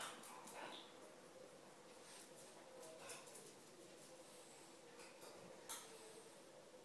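A small dog's claws tap and click on a hard floor.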